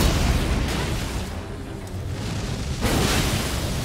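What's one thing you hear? A whirlwind roars and whooshes.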